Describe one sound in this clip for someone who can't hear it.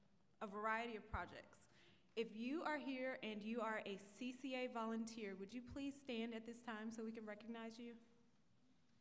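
A woman speaks with animation into a microphone, heard through loudspeakers in a large echoing hall.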